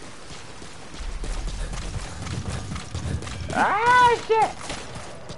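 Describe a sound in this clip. Footsteps run quickly over grass and gravel.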